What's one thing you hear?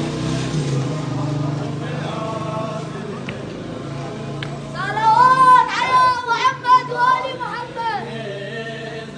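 A crowd of men chants together outdoors.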